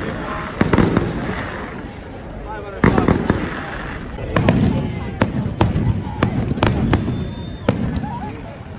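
Fireworks bang and crackle in the distance.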